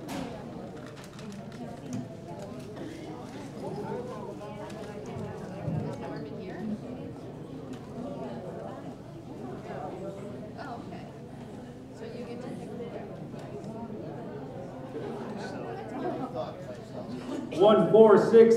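A woman talks quietly nearby.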